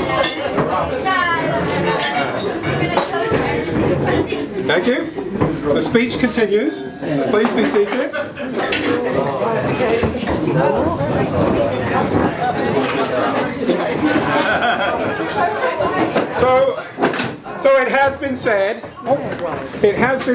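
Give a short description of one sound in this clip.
A middle-aged man gives a speech loudly to a room.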